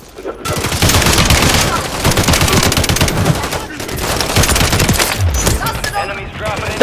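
A rifle fires in rapid bursts of gunshots.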